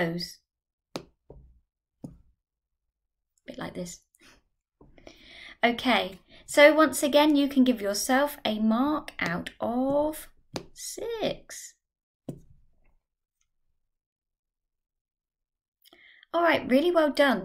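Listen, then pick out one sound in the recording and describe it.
A young woman speaks clearly and calmly into a microphone.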